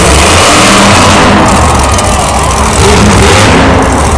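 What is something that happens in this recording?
A monster truck crashes down onto crushed cars with a heavy crunch.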